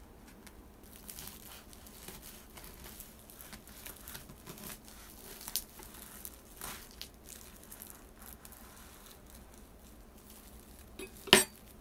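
A knife saws through crisp toasted bread.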